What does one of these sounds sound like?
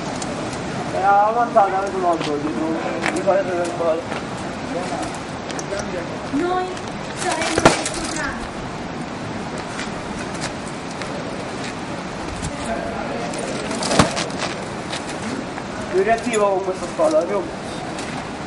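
Several young men talk loudly nearby.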